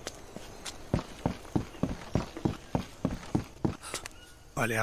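Footsteps crunch steadily through undergrowth.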